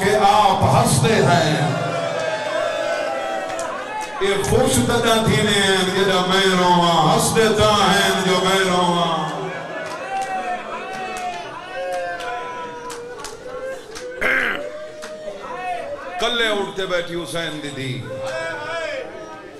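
A young man speaks passionately into a microphone, his voice rising and falling through loudspeakers with a slight echo.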